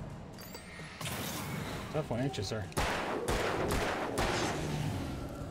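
A flashlight crackles with a loud bright burst.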